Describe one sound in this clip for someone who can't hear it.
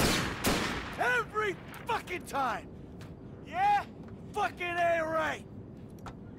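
A man curses angrily.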